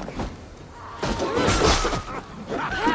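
Blades clash and strike in a short fight.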